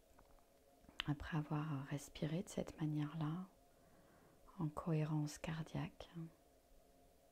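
A middle-aged woman speaks slowly and calmly into a close microphone.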